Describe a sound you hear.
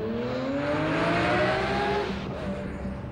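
A sports car engine revs loudly as the car speeds past.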